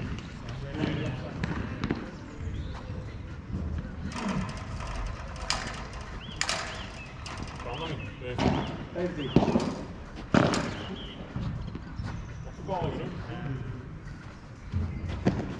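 Paddle rackets strike a ball with sharp pops.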